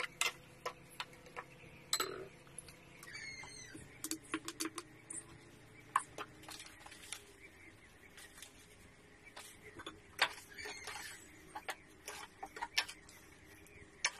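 A metal spatula scrapes and clacks against a wok.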